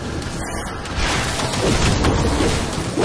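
Game combat sounds of magic blasts and hits burst out loudly.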